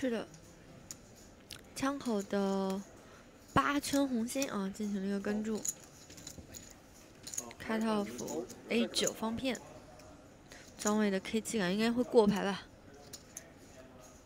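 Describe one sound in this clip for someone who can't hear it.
Poker chips click softly as a player shuffles them.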